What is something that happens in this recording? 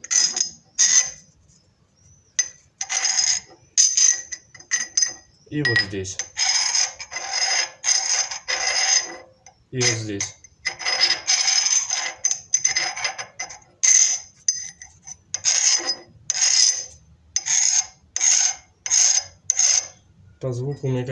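A metal file rasps in repeated strokes against a steel rod.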